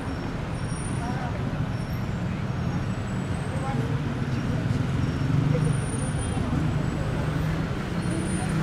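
Traffic rumbles steadily on a busy city street outdoors.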